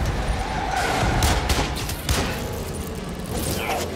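A gun fires several quick shots.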